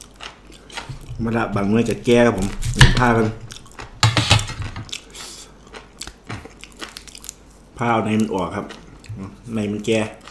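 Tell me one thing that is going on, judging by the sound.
A knife scrapes and cuts a small vegetable.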